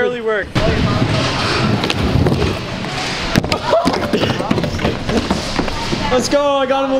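Scooter wheels roll and rumble over wooden ramps in a large echoing hall.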